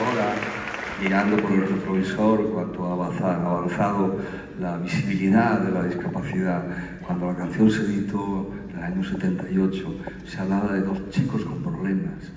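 An elderly man speaks with animation into a microphone, heard through loudspeakers in a large hall.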